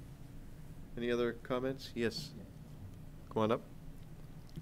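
An older man speaks briefly into a microphone.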